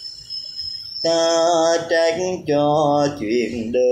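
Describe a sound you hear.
An elderly man sings loudly, close up.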